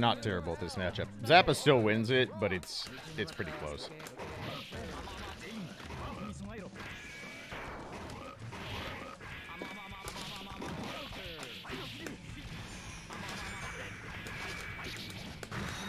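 Upbeat game music plays steadily.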